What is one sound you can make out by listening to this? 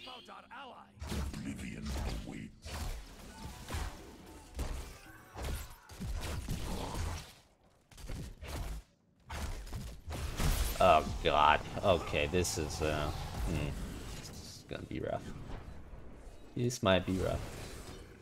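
Game sound effects of spells and fighting play.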